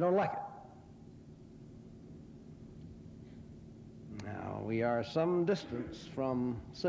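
An elderly man speaks slowly and deliberately into a microphone.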